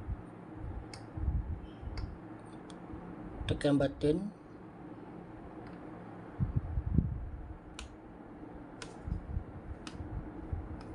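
Plastic buttons click on a joystick base, now and then.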